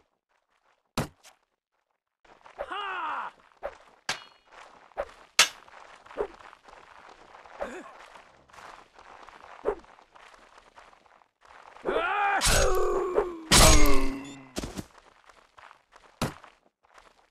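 Swords clash and strike in quick, sharp hits.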